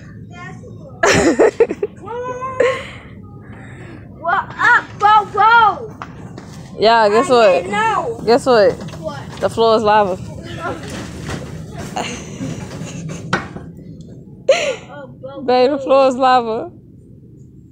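A young boy shouts and laughs excitedly close by.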